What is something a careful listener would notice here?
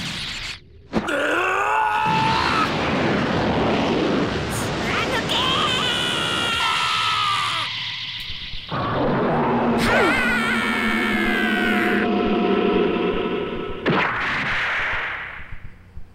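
An energy blast roars and crackles.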